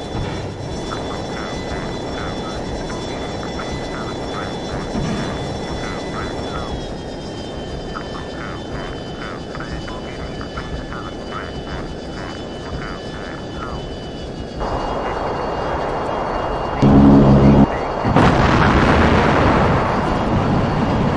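A jet engine roars in flight.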